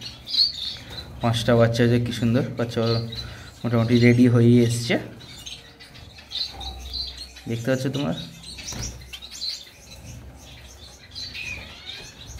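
Young birds chirp softly close by.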